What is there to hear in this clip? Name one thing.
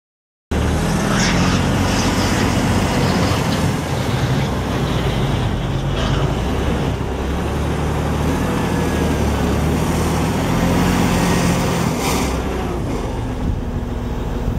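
Tyres crunch over gravel.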